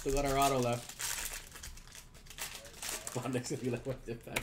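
A foil card wrapper crinkles and tears.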